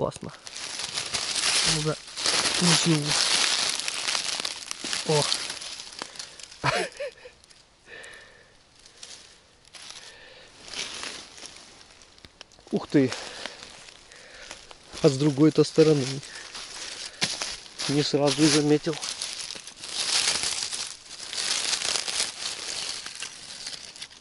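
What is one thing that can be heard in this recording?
Dry leaves rustle and crunch as a hand digs through the forest floor.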